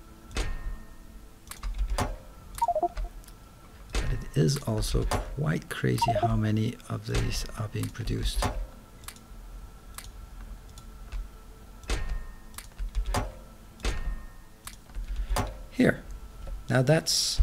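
Short game interface clicks sound as menus open and close.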